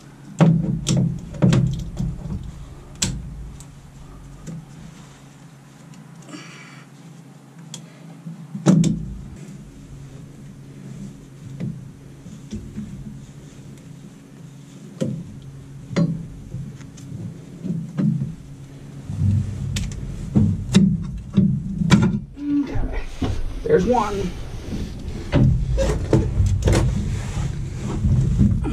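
A hand tool clinks and clicks on metal fittings.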